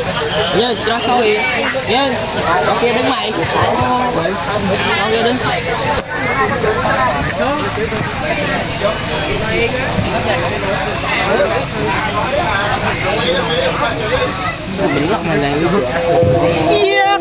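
Hand drums beat in a lively rhythm close by.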